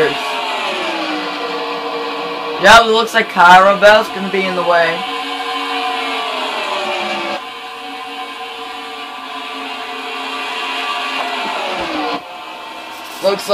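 Racing car engines whine at high revs, rising and falling in pitch.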